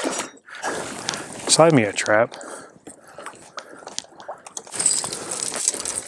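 Water splashes around a man wading.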